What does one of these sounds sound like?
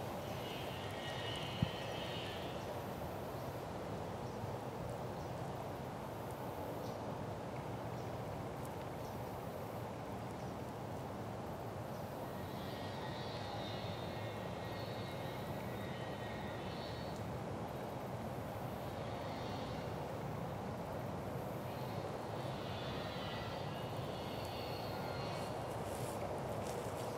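Bare feet step softly on dry pine needles.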